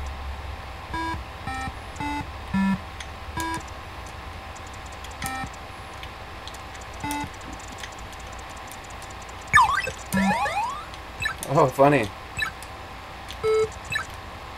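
Short electronic game beeps sound as a character jumps.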